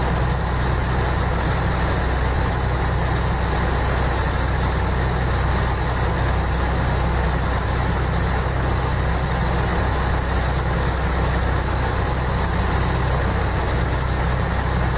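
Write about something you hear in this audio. Tyres roll on a highway with a steady road noise.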